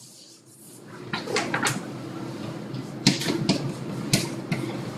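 Chalk taps and scratches on a board.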